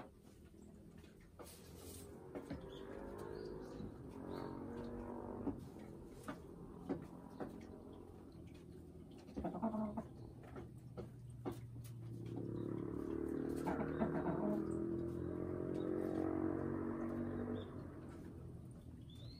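A hen clucks and croons in low, drawn-out tones close by.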